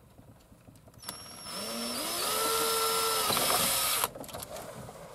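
A cordless drill whirs, driving in a screw.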